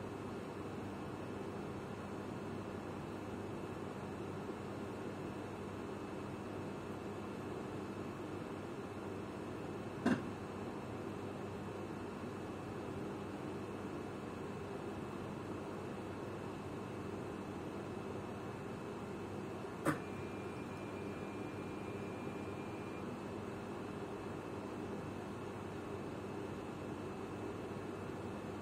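A train's engine hums steadily.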